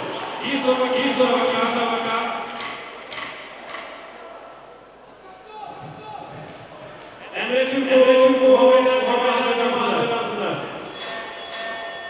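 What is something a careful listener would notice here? A man announces loudly over a loudspeaker in a large echoing hall.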